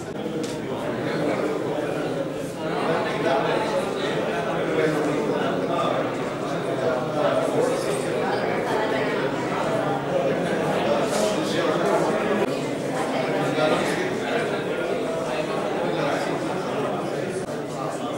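A man talks calmly across a table.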